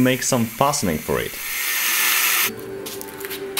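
An angle grinder cuts through steel.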